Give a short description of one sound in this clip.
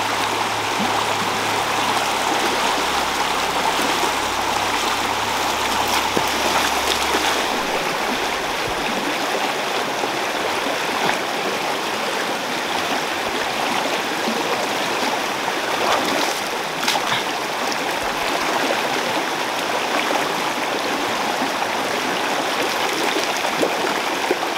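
Boots splash while wading through shallow water.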